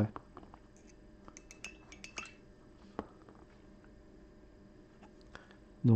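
A small bottle is set down on a table with a light knock.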